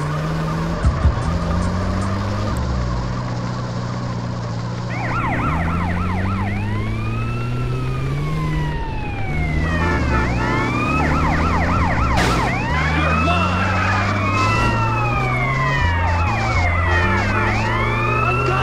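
A truck engine drones steadily as it drives.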